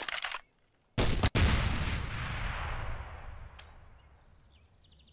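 Several explosions boom and rumble away.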